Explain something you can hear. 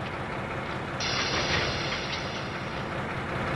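Air hisses sharply from a coupling between train wagons.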